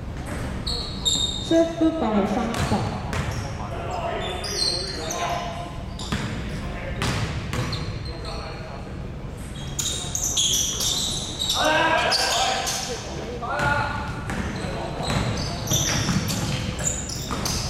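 Men shout and call out during play in an echoing gym.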